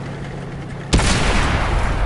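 A shell explodes close by with a loud blast.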